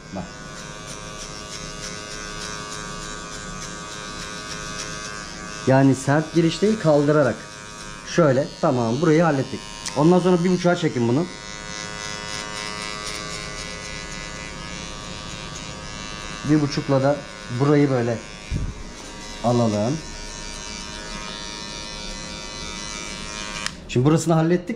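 Electric hair clippers buzz steadily.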